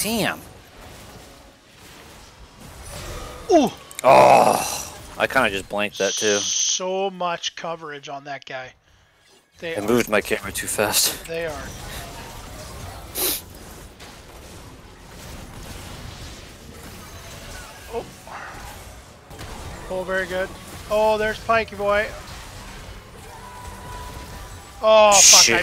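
Magic spells whoosh and blast in a busy fight.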